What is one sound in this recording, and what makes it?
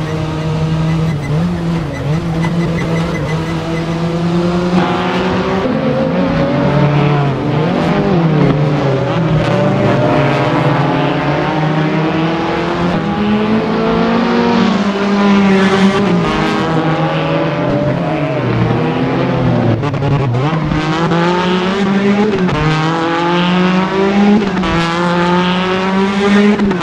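Tyres squeal on asphalt through the bends.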